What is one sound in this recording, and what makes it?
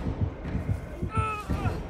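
A woman screams and groans in pain.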